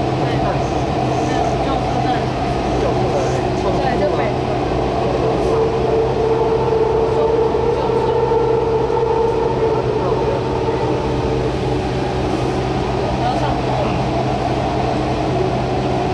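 A train rumbles and hums steadily along an elevated track.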